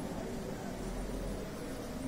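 A ceiling fan whirs overhead.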